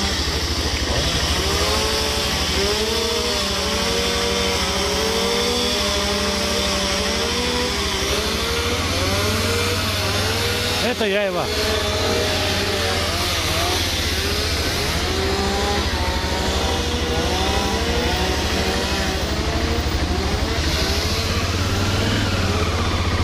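A motorcycle engine idles with a steady low rumble.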